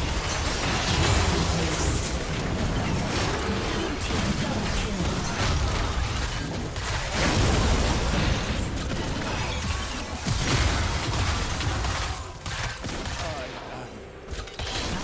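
Magic spells blast, crackle and zap in a hectic battle.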